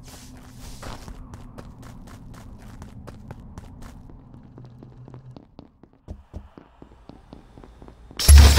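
Quick light footsteps patter steadily.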